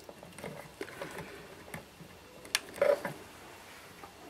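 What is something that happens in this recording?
Small metal test clips click as they snap onto wires.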